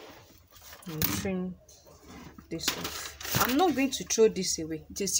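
A sheet of stiff paper rustles as it is moved.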